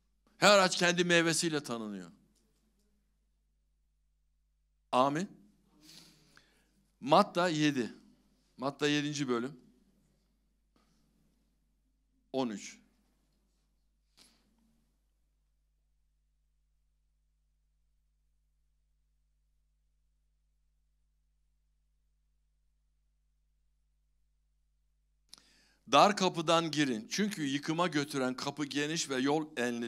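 An elderly man speaks calmly into a microphone, pausing often.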